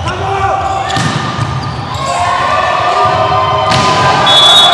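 A volleyball is struck hard with a sharp smack in a large echoing hall.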